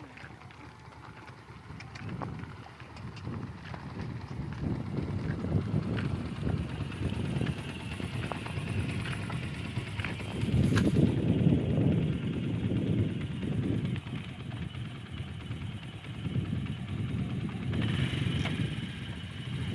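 A donkey cart rattles and creaks along a road.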